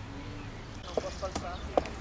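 A footballer's feet pound on grass while sprinting.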